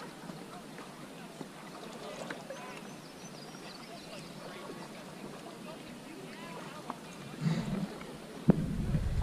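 Paddles dip and splash in river water.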